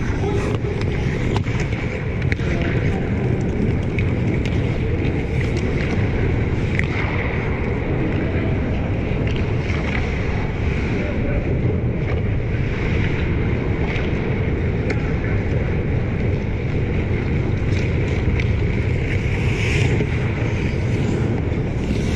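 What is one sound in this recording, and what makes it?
Skates scrape and carve across ice in a large echoing arena.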